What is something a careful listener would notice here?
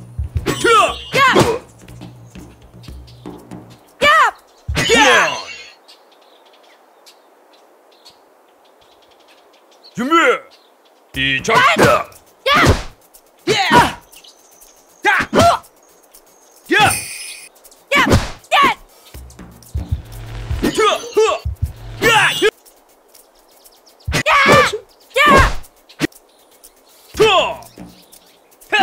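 Kicks land on a body with heavy thuds.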